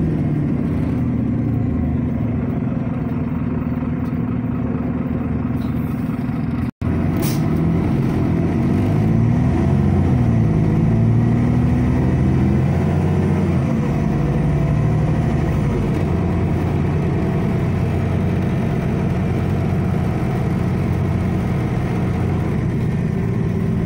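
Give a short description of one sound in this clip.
A bus engine hums and rumbles steadily from inside as the bus drives along.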